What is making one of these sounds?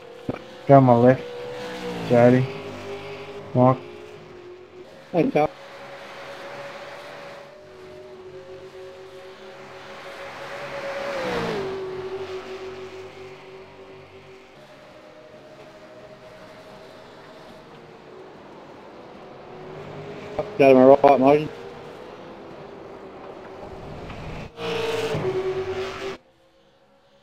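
Racing car engines roar and whine, rising and falling in pitch as they shift gears.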